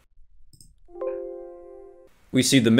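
A short computer alert chime sounds.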